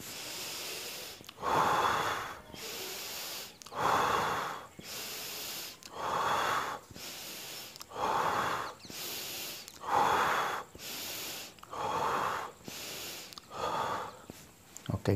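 A man breathes in and out deeply and slowly, again and again.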